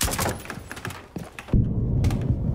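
Wooden planks splinter and crack apart.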